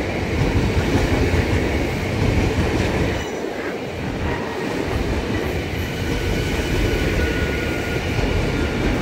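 An electric commuter train rushes past at speed with a rumbling roar.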